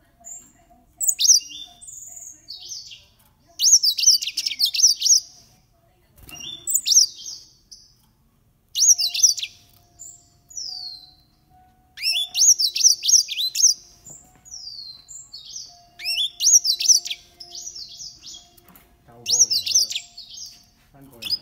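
A small bird sings a bright, chirping, trilling song in short bursts close by.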